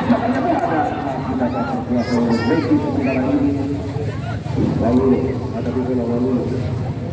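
A crowd of spectators chatters and shouts outdoors nearby.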